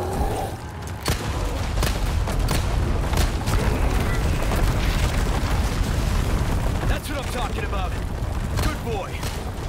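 Gunshots fire repeatedly.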